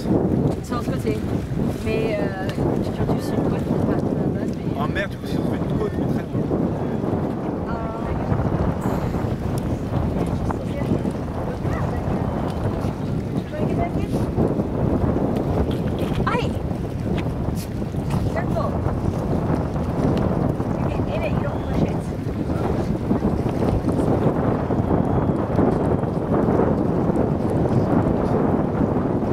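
Wind blows hard across the microphone outdoors.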